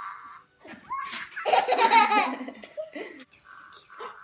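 Two girls laugh and exclaim loudly.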